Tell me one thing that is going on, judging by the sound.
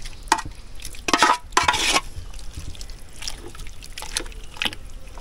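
Water pours from a pot into a cooking pot.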